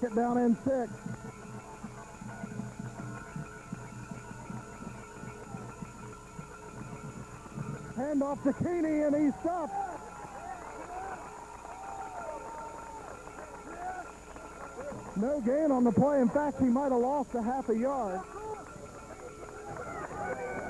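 A crowd cheers and shouts from the stands.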